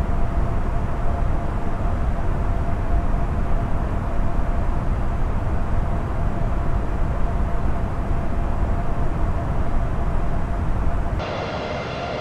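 Jet engines rumble low and steady, heard from inside the cockpit.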